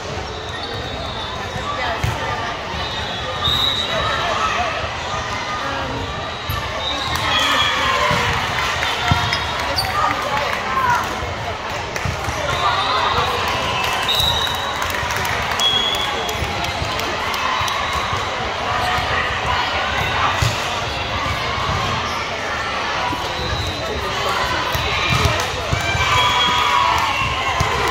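Spectators chatter and cheer in a large echoing hall.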